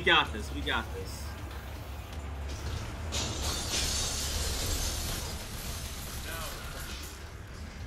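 A young man speaks with animation through a headset microphone.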